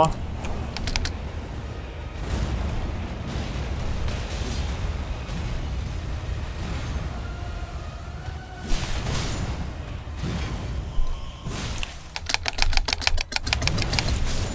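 Swords clash and strike sharply.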